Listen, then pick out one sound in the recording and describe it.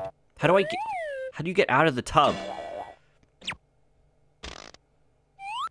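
Playful cartoon sound effects whistle and boing.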